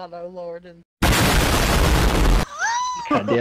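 A loud explosion roars and rumbles.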